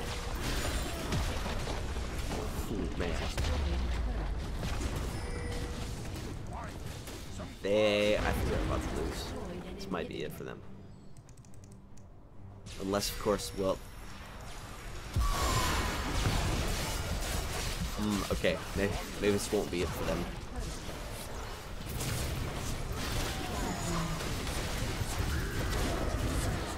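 Magic spells crackle, whoosh and blast in a busy fight.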